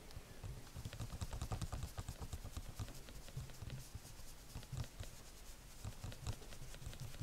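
An ink sponge dabs and taps on paper.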